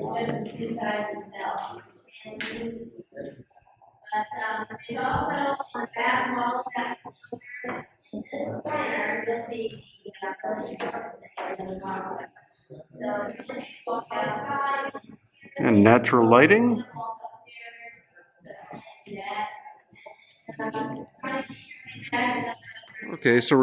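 A man talks calmly close by, his voice echoing slightly off hard walls.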